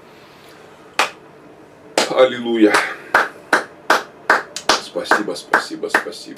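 A man claps his hands rhythmically.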